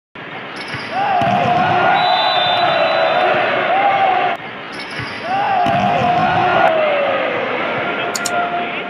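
Young men shout during play.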